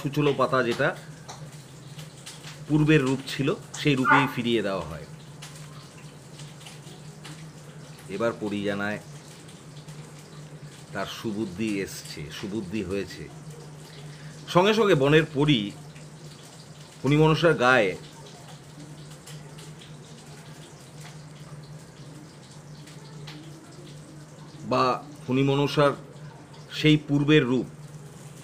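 An older man speaks calmly and close to the microphone, in short bursts with pauses.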